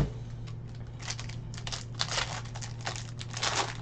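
A foil pack tears open.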